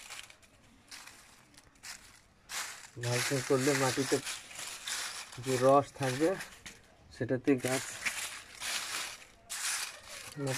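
A hand rustles and crunches through dry leaves close by.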